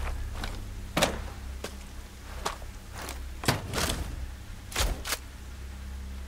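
Gear clicks and clatters sharply up close.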